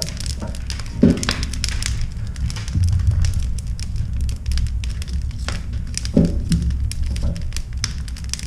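Logs thud against each other as they are dropped into a stove.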